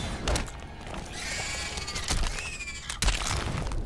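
An alien creature screeches.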